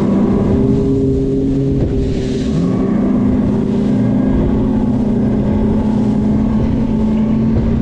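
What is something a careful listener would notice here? Water hisses and splashes against a speeding boat's hull.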